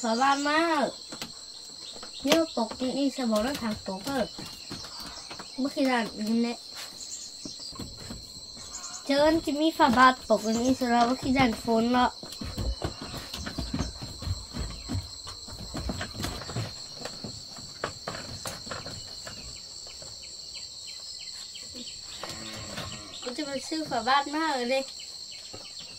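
A boy talks softly and calmly, close by.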